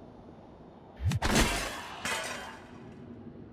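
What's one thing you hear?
A heavy metal tool strikes something with a loud crash.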